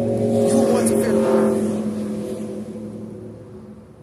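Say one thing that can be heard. A vehicle drives past on the street and fades away.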